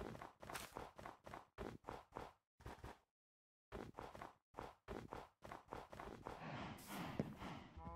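Footsteps crunch on snow in quick steps.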